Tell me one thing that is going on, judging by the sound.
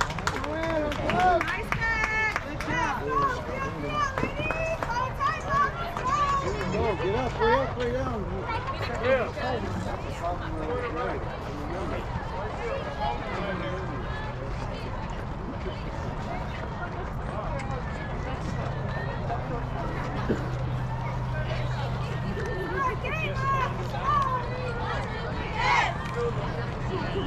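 Young women cheer and shout from nearby in an open outdoor space.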